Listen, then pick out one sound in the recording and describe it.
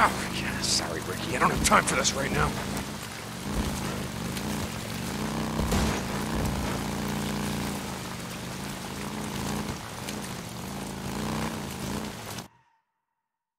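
A motorcycle engine rumbles steadily, rising and falling in pitch.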